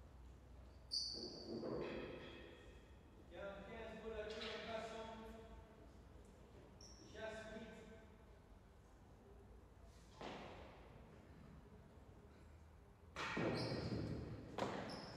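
A ball smacks hard against a wall and echoes through a large hall.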